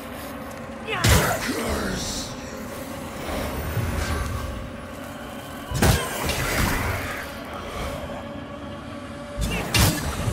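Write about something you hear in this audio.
Heavy weapon blows strike with loud thuds and clangs.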